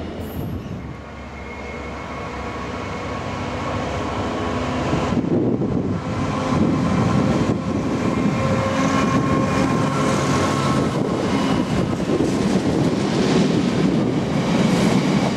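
A heavy freight train rumbles slowly past close by.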